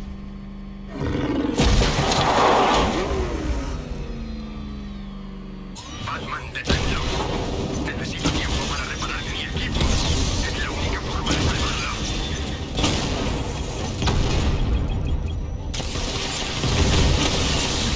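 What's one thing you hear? A heavy armoured vehicle's engine roars as it drives over ice.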